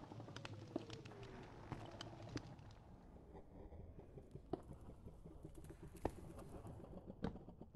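Footsteps tap on stone.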